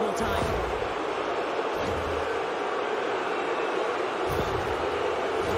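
A large crowd roars steadily in an echoing arena.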